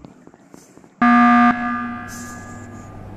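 A loud game alarm blares suddenly.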